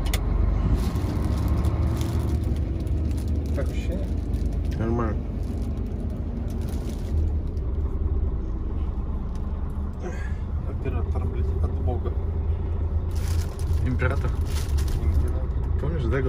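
A truck engine rumbles steadily inside the cab.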